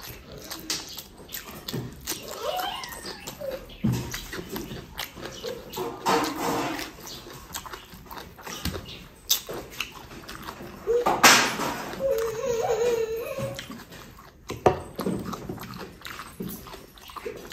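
A man chews food noisily close to the microphone.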